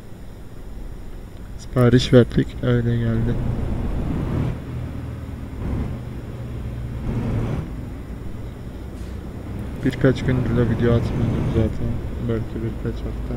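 A heavy diesel truck engine drones while cruising.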